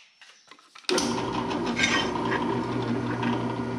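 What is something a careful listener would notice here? A drill press motor hums steadily.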